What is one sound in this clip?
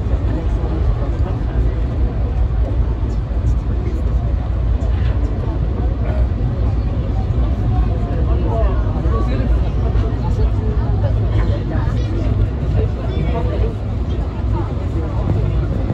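A train rumbles steadily along the rails from inside the cab.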